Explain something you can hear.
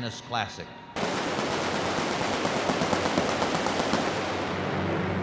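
Fireworks crackle and pop loudly.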